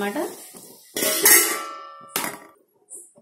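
A metal lid clanks onto a pot and rings briefly.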